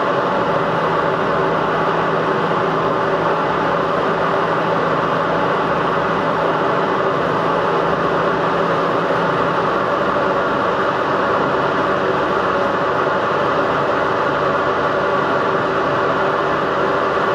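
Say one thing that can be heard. Wind and road noise rush loudly around a fast-moving car.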